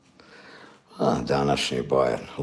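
A middle-aged man speaks close to the microphone.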